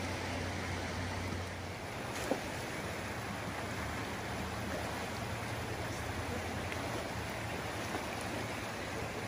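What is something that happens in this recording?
A fast river rushes and churns loudly nearby.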